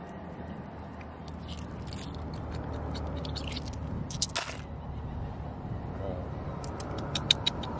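Glass pebbles click together under water.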